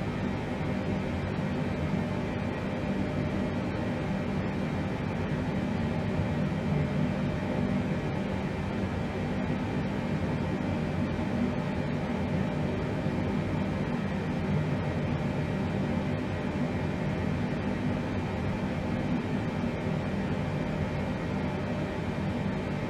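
A steady, low engine drone hums inside an aircraft cockpit.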